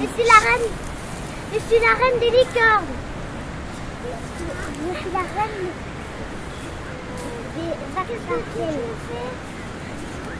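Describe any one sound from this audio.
Young girls speak and exclaim with animation nearby.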